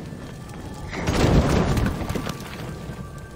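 Wooden planks crash and splinter apart.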